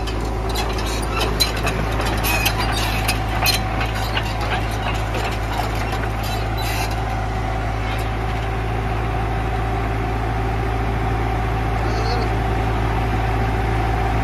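The diesel engine of a tracked excavator runs.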